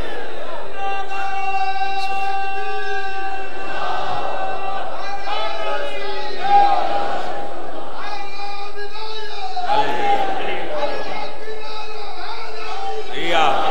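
A young man chants a mournful song loudly through a microphone.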